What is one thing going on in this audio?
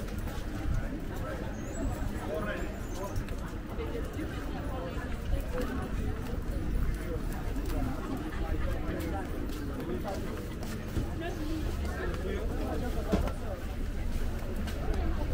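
Footsteps tread on a pavement outdoors.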